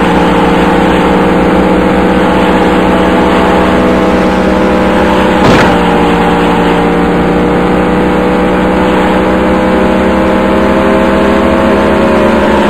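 A race car engine roars steadily at high revs, its pitch slowly rising.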